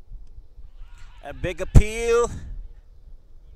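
Young men shout an appeal loudly outdoors.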